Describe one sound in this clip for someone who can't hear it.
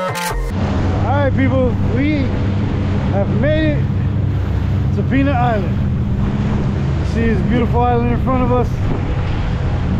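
A man speaks loudly with animation close by.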